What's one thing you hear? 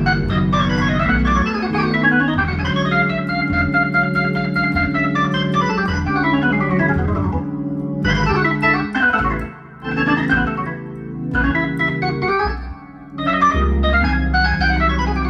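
An electric organ plays a lively tune with rich chords and a deep bass line.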